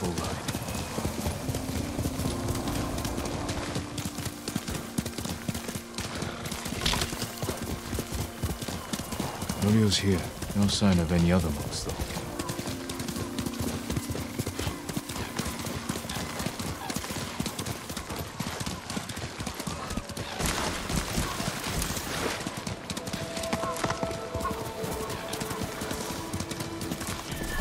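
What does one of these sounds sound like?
Plants rustle and swish as a horse pushes through them.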